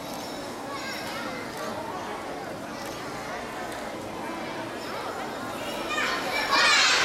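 A group of young children chatters and calls out in a large echoing hall.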